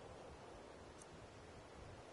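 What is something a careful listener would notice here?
A soft menu click sounds once.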